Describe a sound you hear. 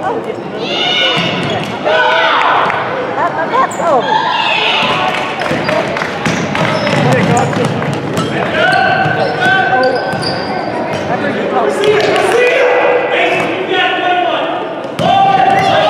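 Children shout and call out loudly in a large echoing gym.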